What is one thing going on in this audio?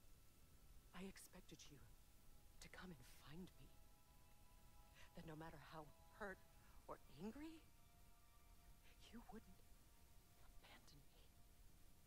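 A woman speaks softly and emotionally, close by.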